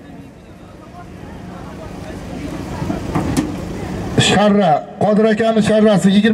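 A large crowd murmurs and calls out across open ground.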